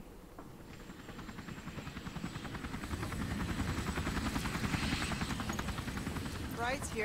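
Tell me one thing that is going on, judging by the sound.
A helicopter's rotor whirs and grows louder.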